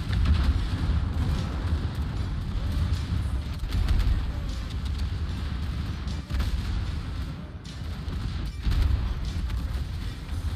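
Heavy naval guns boom with a deep, steady rumble.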